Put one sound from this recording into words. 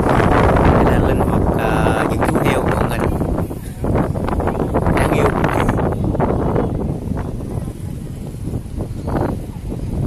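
Wind blows strongly outdoors, rumbling against the microphone.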